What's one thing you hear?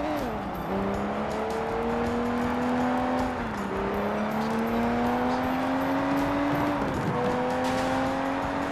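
A car engine revs and climbs through the gears, dropping in pitch at each gear change.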